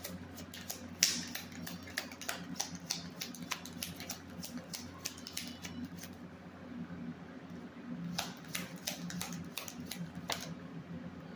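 A plastic container clicks and rattles in a woman's hands.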